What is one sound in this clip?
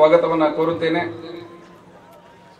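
A man speaks loudly over a public address loudspeaker outdoors.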